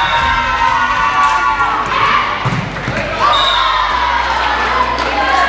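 Young women players call out to each other.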